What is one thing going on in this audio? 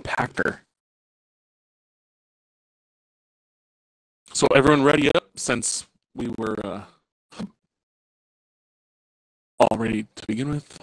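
A man talks casually into a close microphone, in short bursts with pauses.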